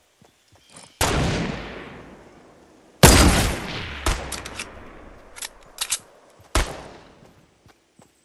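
A sniper rifle fires loud shots that echo away.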